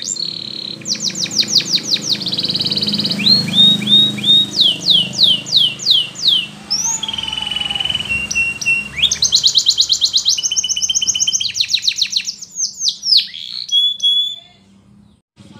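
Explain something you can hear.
A canary sings a long, fast song of trills and rolling whistles close by.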